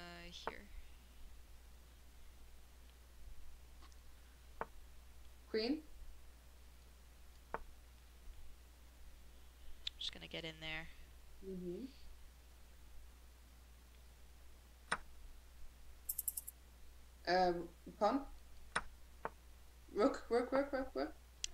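A young woman speaks with animation over an online call, in short bursts.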